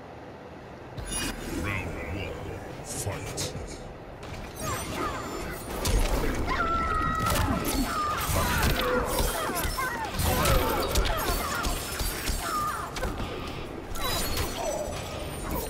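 Punches and kicks thud and smack in a fast fight.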